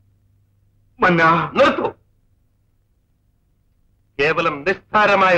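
An older man speaks pleadingly.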